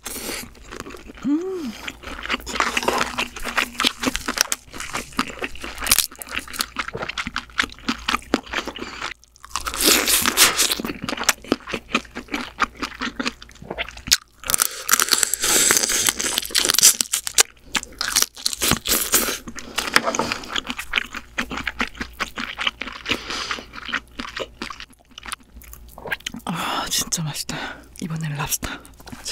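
A young woman chews food noisily close to a microphone.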